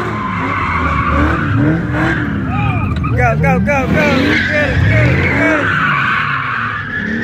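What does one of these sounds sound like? Car tyres squeal on a slick road.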